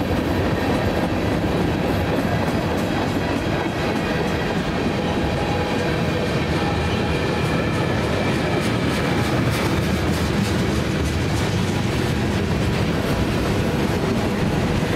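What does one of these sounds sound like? Metal squeals faintly from the passing train cars.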